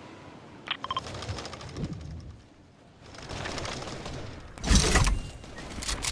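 A glider swooshes through the air while descending.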